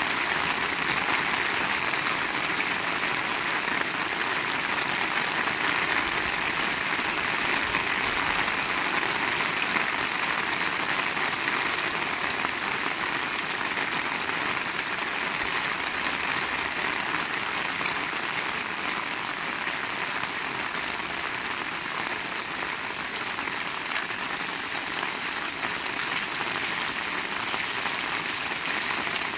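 Rainwater splashes and runs over the wet pavement.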